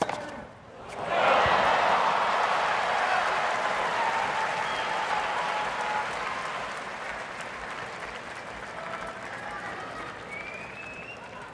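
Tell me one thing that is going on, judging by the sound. A large crowd cheers and applauds loudly, then slowly fades.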